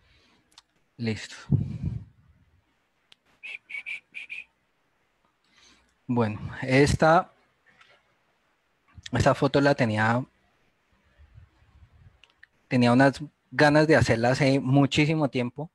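A man speaks in bursts over an online call, through a headset microphone.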